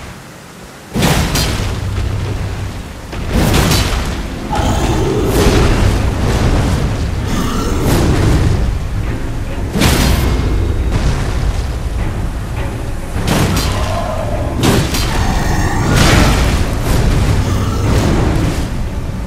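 Heavy blows and crashes strike again and again.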